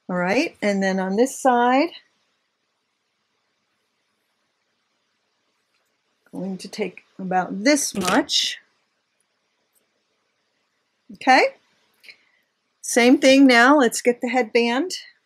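An older woman talks calmly and closely into a microphone, with pauses.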